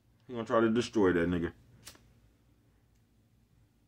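A lighter clicks once.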